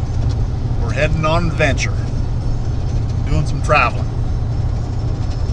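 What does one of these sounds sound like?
A car engine rumbles steadily with road noise.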